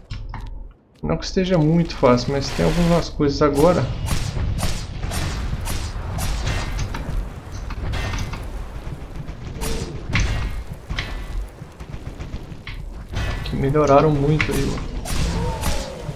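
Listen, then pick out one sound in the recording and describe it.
Game combat clashes and thuds with loud impacts.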